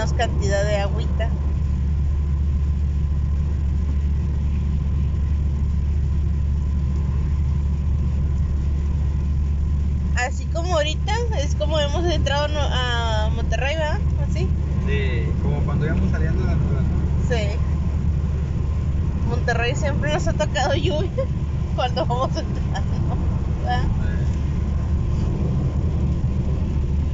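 A car engine and tyres rumble steadily on a wet road.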